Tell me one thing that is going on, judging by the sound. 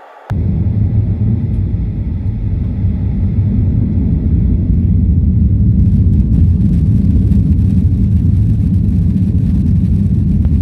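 Wheels rumble and rattle over a runway.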